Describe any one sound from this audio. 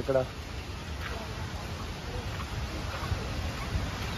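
A shallow stream trickles over rocks.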